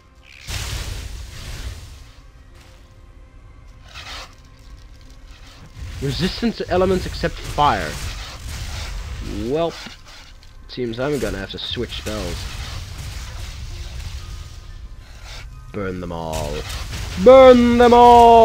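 Magic spells blast and crackle in a fantasy game fight.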